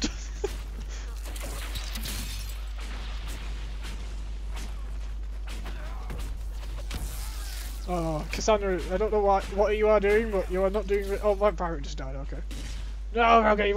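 Swords clash and magic blasts burst in a fight.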